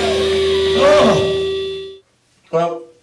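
A band plays loud rock music with electric guitars and drums.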